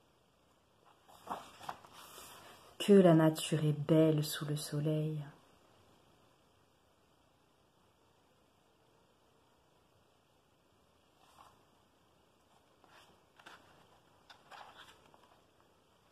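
A book's paper pages rustle as they are turned by hand.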